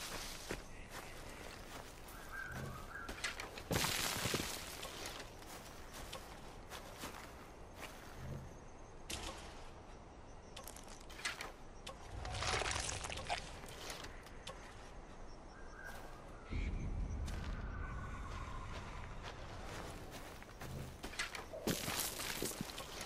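Footsteps crunch through dry grass and gravel.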